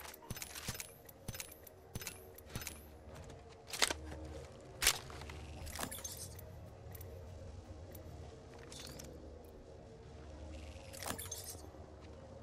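Short interface clicks and pickup chimes sound in quick succession.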